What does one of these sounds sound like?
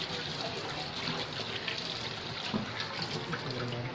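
Tap water runs and splashes into a metal sink.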